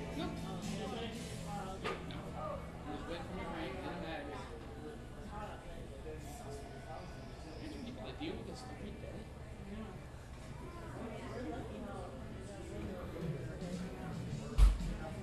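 Many men and women chatter indistinctly in the background.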